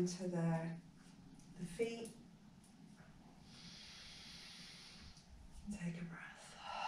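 A woman speaks calmly and softly.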